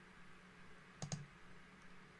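A computer mouse clicks twice.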